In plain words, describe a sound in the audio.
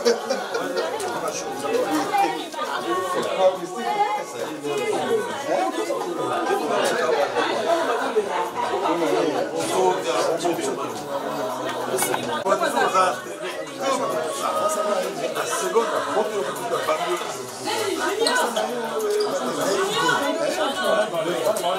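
Several men and women talk and chatter at once nearby.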